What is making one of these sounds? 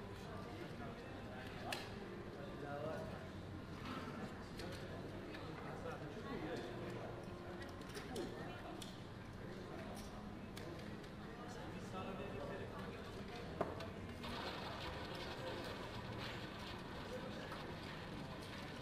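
People murmur and chatter in the background.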